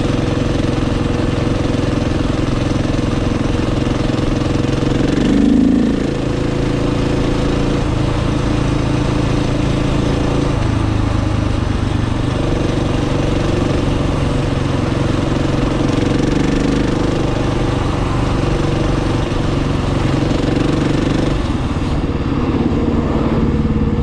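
A motorcycle engine hums loudly and shifts pitch as the rider speeds up and slows down.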